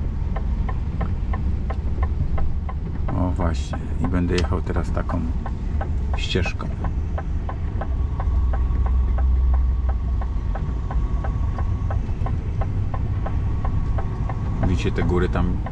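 A heavy vehicle's engine rumbles steadily from inside the cab.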